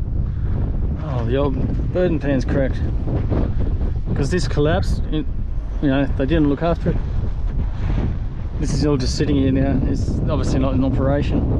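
A man talks calmly, close to the microphone.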